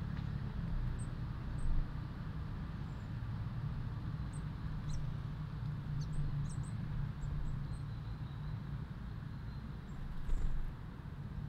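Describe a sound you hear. Small birds chirp in short high notes outdoors.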